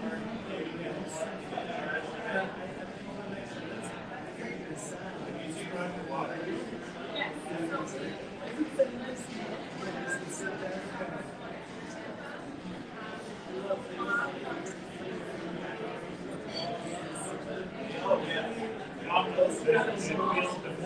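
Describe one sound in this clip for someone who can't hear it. Many adults talk at once in a lively, slightly echoing room.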